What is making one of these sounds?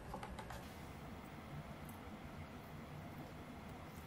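Milk pours into a glass jar with a quiet gurgle.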